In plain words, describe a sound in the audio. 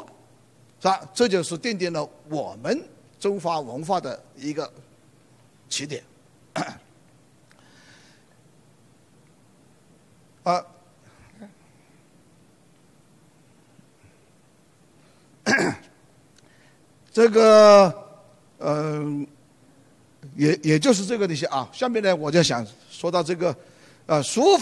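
An elderly man lectures calmly into a microphone, with pauses.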